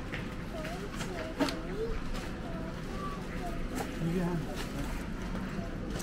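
Groceries clink and rustle as they are placed in a shopping trolley.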